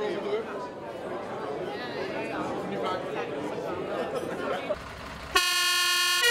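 A crowd of adults chats.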